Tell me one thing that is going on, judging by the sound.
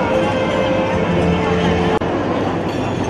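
A crowd of people chatters in a large room.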